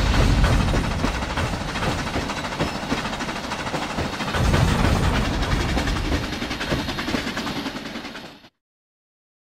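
Train wheels clatter over rails.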